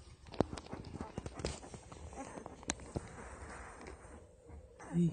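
Small puppies shuffle and rustle close by.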